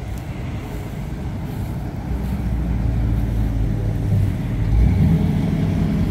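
A classic pickup truck drives past.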